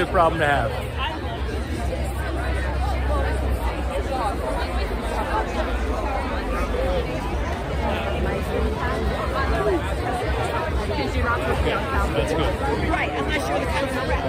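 A large crowd chatters all around outdoors.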